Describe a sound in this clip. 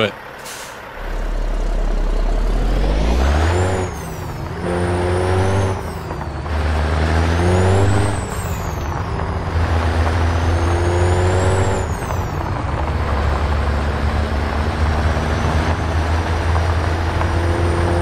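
A heavy truck engine rumbles and revs up and down through the gears.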